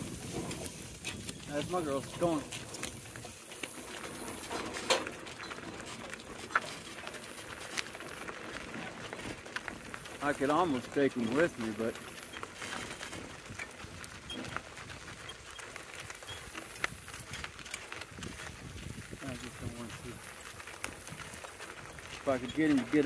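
Hooves clop steadily on a gravel road.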